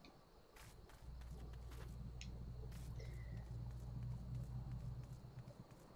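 A young man talks quietly close to a microphone.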